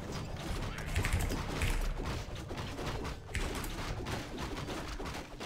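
Fantasy battle sounds of clashing weapons and crackling spells play rapidly.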